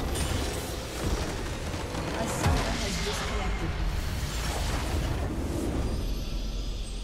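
A structure explodes and crumbles with loud booming blasts.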